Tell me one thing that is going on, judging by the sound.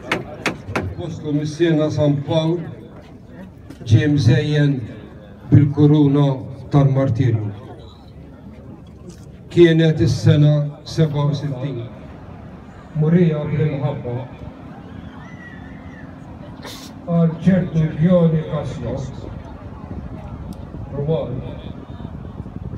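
A man speaks loudly through a loudspeaker, echoing outdoors.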